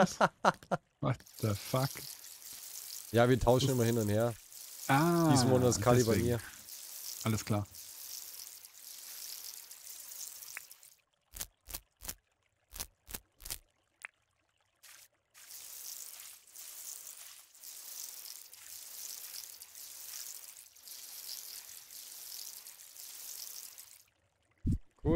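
Water sprinkles from a watering can in short bursts.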